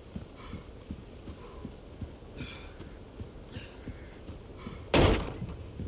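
Footsteps crunch through undergrowth outdoors.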